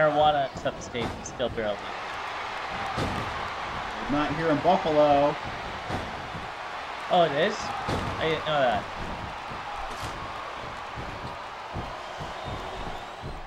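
A large crowd murmurs and cheers in a big arena.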